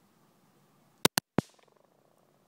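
A stone knocks against concrete pavement.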